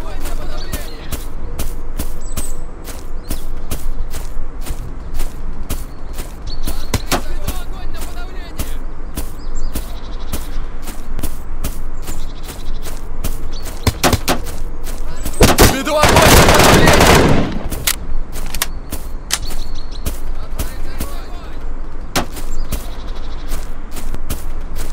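Footsteps thud steadily on grass.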